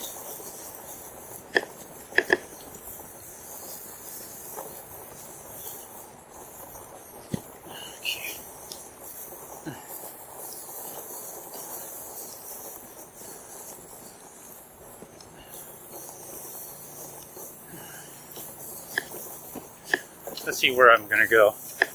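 Bicycle tyres roll steadily over grass.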